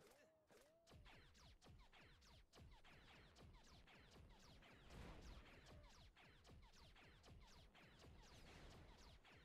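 A turret gun fires rapid laser blasts.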